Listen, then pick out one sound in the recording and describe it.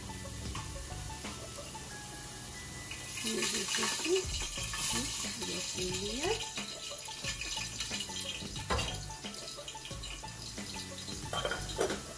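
Water bubbles at a boil in a pot.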